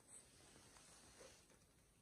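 Tent fabric rustles and flaps.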